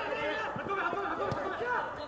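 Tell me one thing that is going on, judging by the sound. A football thuds as a player kicks it.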